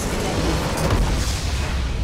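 A large explosion booms and crackles.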